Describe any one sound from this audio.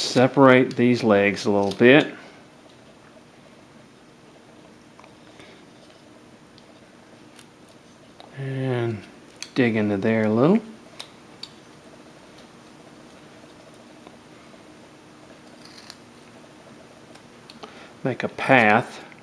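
A carving knife whittles small chips from a block of wood.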